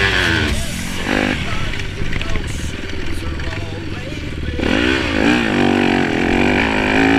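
A dirt bike engine revs loudly, rising and falling in pitch.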